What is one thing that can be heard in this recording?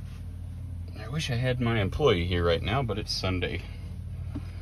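A man speaks briefly up close with animation.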